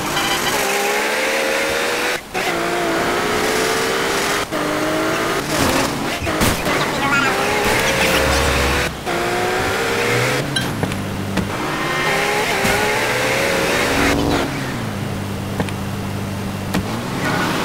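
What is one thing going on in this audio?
A car engine hums and revs as a car drives.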